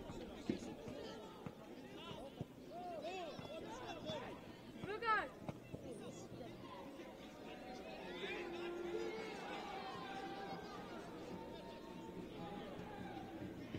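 A crowd of spectators murmurs and calls out in the distance.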